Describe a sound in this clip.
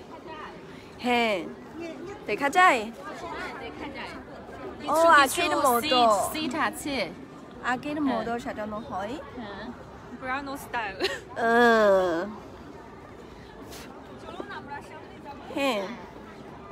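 A young woman talks and laughs with animation close by.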